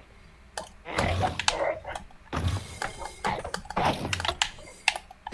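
A sword swishes and strikes a creature.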